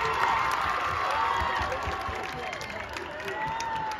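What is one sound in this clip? Feet stomp on a wooden floor.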